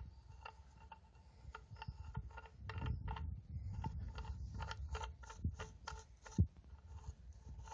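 Gloved fingers rub and scrape against a metal bracket.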